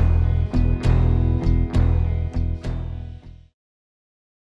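An electric guitar plays a bluesy riff through an amplifier.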